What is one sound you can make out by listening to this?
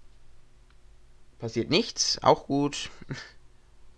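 A small plastic controller slides off a rail with a click.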